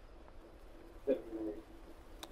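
A golf putter taps a ball.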